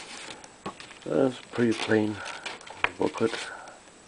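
Paper pages rustle close by.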